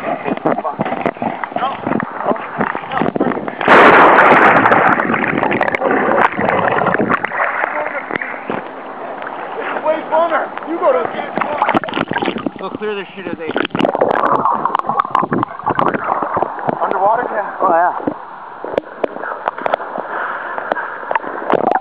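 Water laps and sloshes close by.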